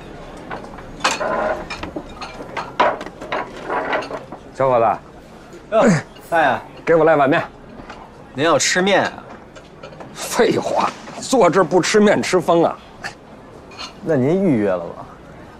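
A young man speaks cheerfully nearby.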